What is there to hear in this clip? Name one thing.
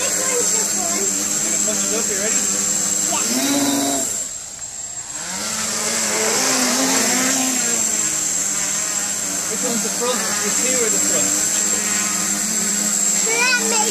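A small drone's propellers whine and buzz steadily, close by, rising and falling in pitch.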